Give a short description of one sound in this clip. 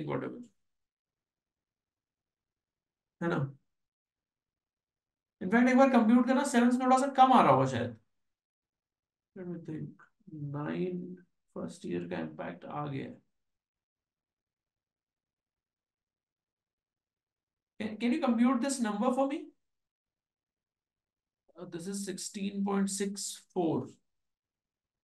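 A man speaks calmly into a close microphone, explaining in short bursts with pauses.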